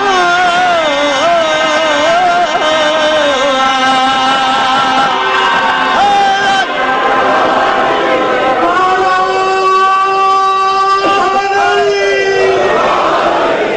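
A man chants in a long, wavering melody through a loudspeaker.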